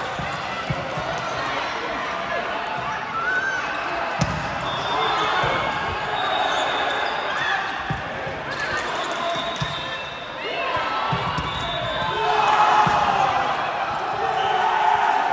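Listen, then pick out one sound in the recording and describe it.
Young women call out and shout during play.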